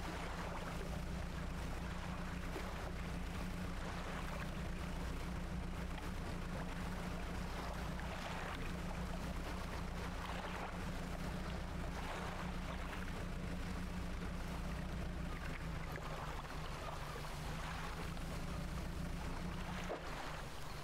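Water splashes and churns around a moving boat.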